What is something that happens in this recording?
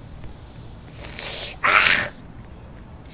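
A spray can hisses in short bursts.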